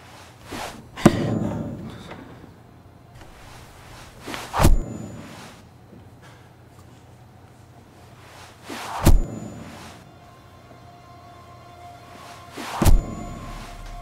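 Knives thud sharply into a wooden board, one after another.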